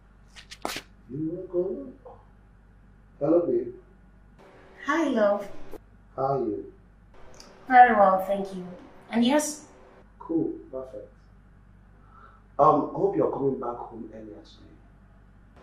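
A man talks on a phone.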